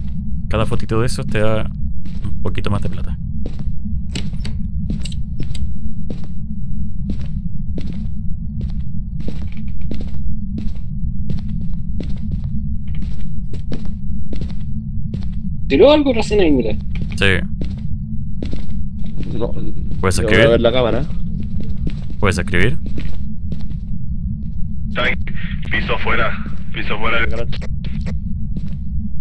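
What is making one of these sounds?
Footsteps thud steadily.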